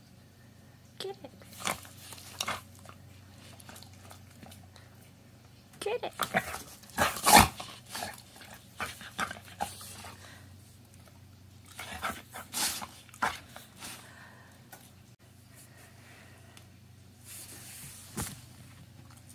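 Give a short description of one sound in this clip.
A dog licks and smacks its lips wetly, in short bursts.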